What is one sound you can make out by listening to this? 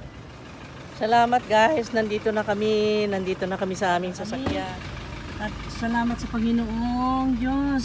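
A middle-aged woman talks close by with animation.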